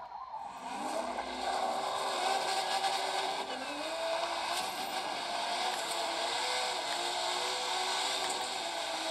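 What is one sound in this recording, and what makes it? A racing car engine revs and roars through a small speaker.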